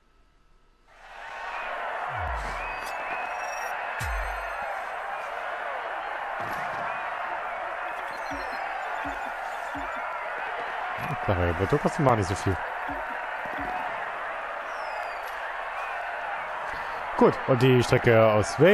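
A crowd cheers and applauds steadily.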